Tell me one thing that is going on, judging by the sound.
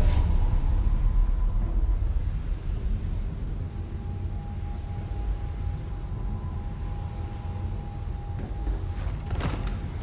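A metal lift rumbles and hums steadily as it moves.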